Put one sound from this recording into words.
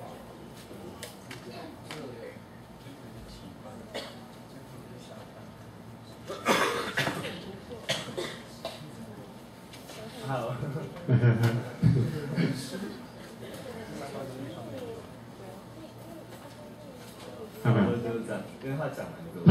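A man speaks through a microphone in a large echoing hall, calmly addressing an audience.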